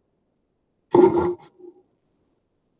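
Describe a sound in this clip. A woman speaks briefly and calmly close by.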